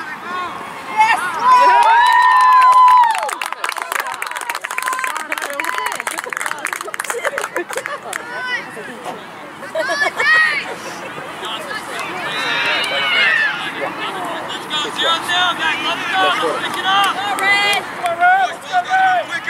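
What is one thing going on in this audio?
Young boys shout and cheer excitedly outdoors.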